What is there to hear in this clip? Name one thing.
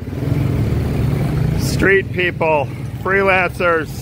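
A motorbike engine hums as the motorbike rides past.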